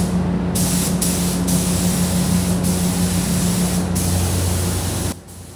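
A spray gun hisses in short, loud bursts.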